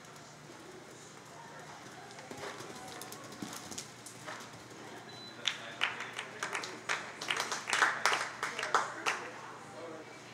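A horse canters with hooves thudding on arena dirt.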